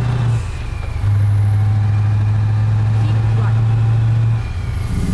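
A truck engine hums steadily at low pitch.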